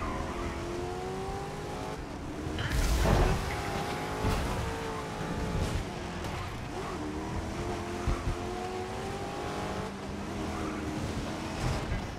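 A racing car engine roars at high revs and shifts through the gears.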